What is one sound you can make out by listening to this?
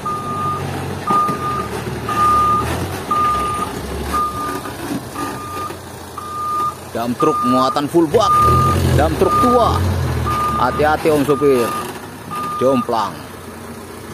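A truck engine idles with a low rumble nearby.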